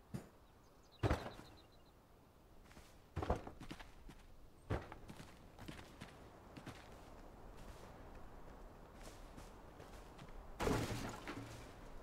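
A hammer knocks on wood in sharp blows.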